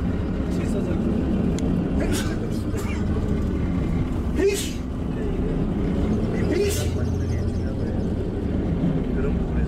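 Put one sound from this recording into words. A moving vehicle rumbles steadily.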